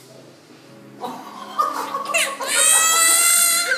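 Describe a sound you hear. A baby cries loudly and wails.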